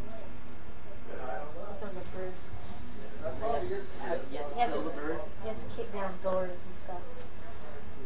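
A young man talks quietly nearby.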